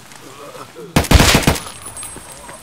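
A pistol fires a few quick, loud shots.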